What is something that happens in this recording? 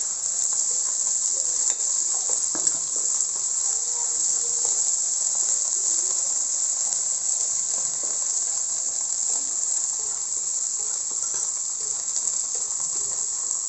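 A wooden spatula scrapes and stirs in a metal wok.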